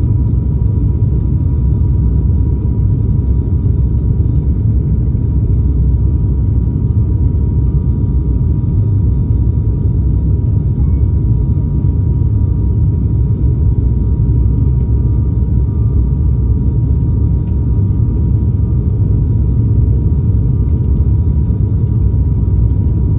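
Aircraft engines roar steadily in a low, loud drone from inside the cabin.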